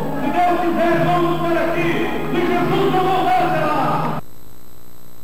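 A middle-aged man sings loudly into a microphone.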